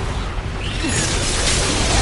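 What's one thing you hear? A blade swings with a loud magical whoosh.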